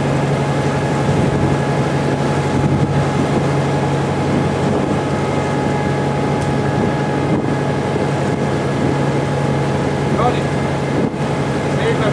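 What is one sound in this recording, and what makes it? A boat engine hums steadily close by.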